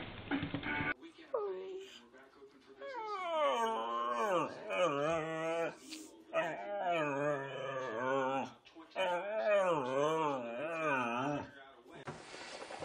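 A dog howls in long, wavering yowls, rising and falling in pitch.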